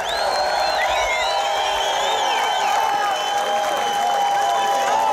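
A rock band plays live on a stage, heard from within the audience.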